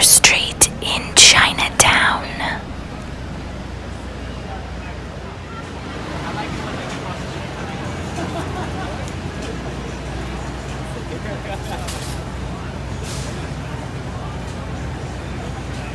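A crowd chatters outdoors on a busy street.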